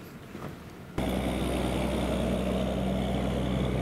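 A large vehicle's engine idles with a deep, steady rumble.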